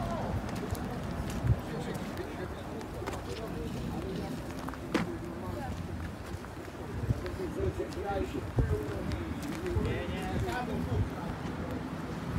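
Footsteps crunch on rough ground.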